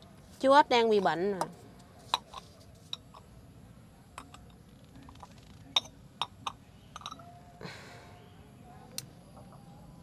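Small objects knock and clink against a stone surface.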